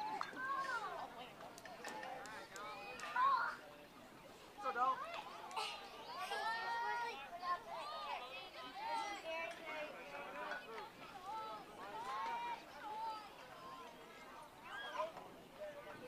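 Children shout and chatter across an open field.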